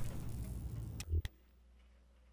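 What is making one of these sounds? A heavy metal clunk rings out once.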